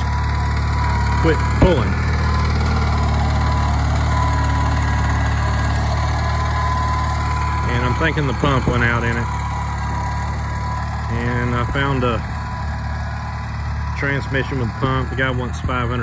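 A small tractor engine rumbles steadily close by.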